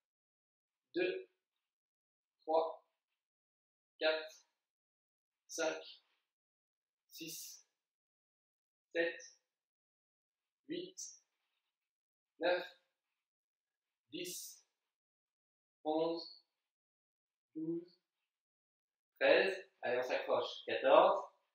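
A man counts aloud in short, even bursts, close by.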